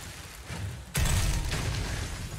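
Ice shatters with a loud crash.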